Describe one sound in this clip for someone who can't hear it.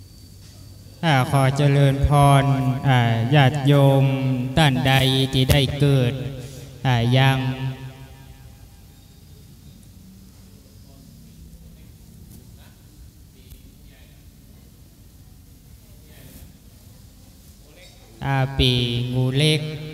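A man chants in a steady, drawn-out voice nearby.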